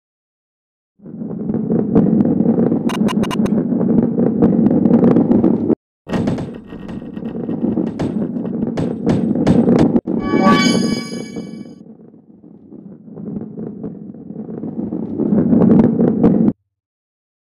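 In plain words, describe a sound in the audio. A heavy ball rolls along a wooden track with a steady low rumble.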